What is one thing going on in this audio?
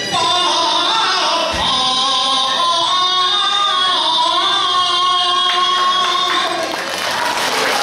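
A man sings through a microphone in a large echoing hall.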